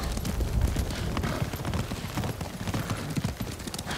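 Hooves clatter on a wooden bridge.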